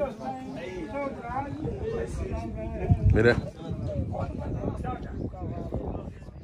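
Several men chatter in a group.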